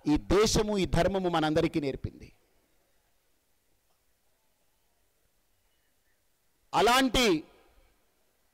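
A man speaks forcefully into a microphone, heard through loudspeakers with pauses between phrases.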